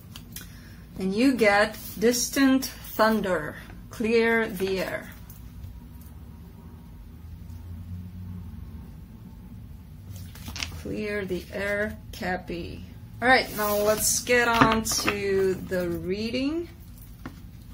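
A woman speaks calmly and close to a microphone, pausing now and then.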